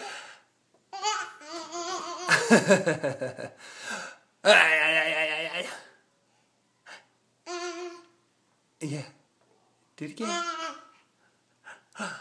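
A toddler giggles and squeals with delight close by.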